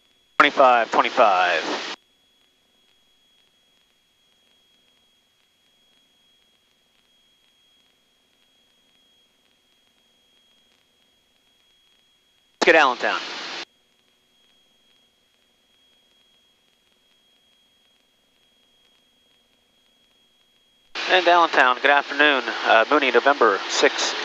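A man speaks in short bursts over a headset intercom.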